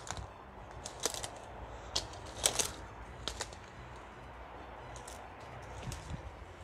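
Dry twigs and leaves crackle and snap underfoot.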